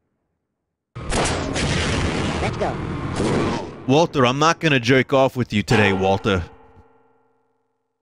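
A weapon fires with a loud, roaring blast.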